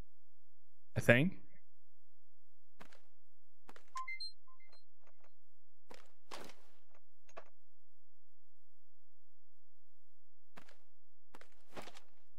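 Short game menu clicks and soft chimes sound as options are picked.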